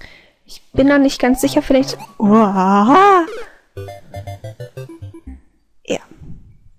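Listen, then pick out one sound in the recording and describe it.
Bouncy video game music plays with short electronic jingles.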